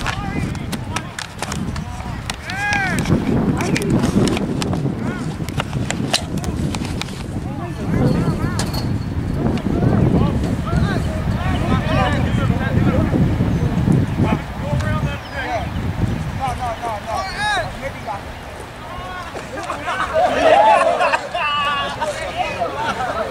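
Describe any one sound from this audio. Young spectators talk and shout nearby.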